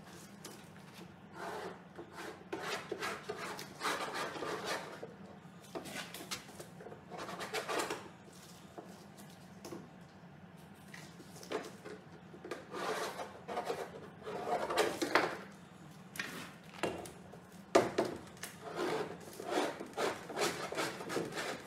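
A metal straightedge scrapes across a canvas in repeated strokes.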